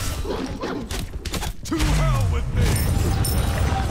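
Game weapons clash and strike in a fight.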